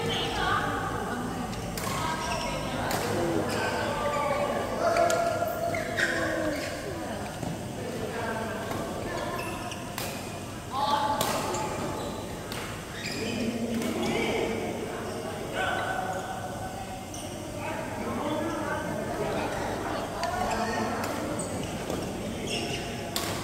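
Many people chatter and call out across a large echoing hall.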